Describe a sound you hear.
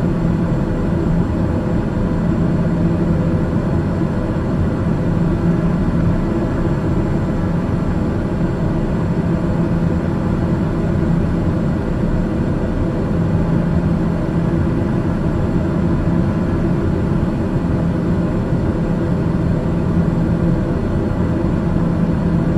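A plane's engines roar steadily in flight.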